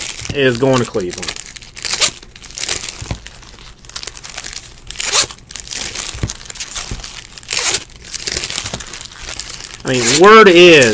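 Trading cards riffle and slide against each other in quick, papery bursts.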